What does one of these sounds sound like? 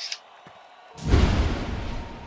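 A magical spell bursts with a loud rushing whoosh.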